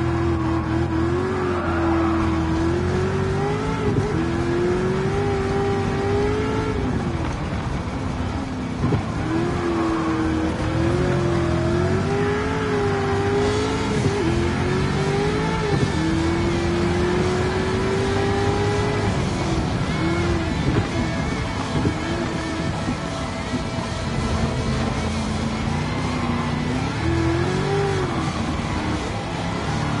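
A racing car engine revs high and drops sharply as gears shift.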